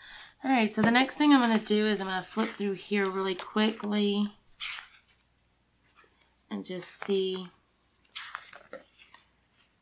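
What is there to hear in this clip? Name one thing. Glossy sticker sheets rustle and flap as they are flipped.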